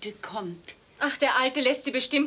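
An elderly woman speaks nearby.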